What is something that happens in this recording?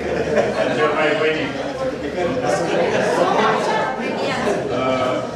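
A crowd of elderly men and women murmurs and chatters nearby.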